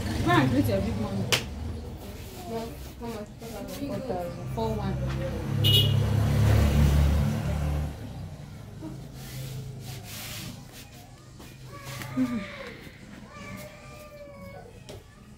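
A young woman talks calmly close to the microphone.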